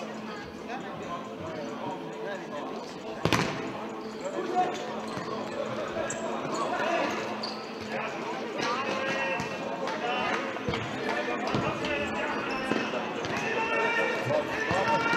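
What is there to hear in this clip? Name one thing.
Men in a crowd talk and chatter nearby in a large echoing hall.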